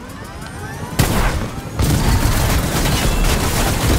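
A helicopter's rotor whirs and roars close by.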